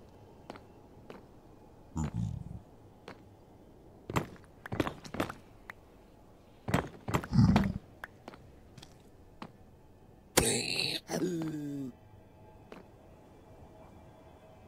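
Footsteps tap softly and steadily.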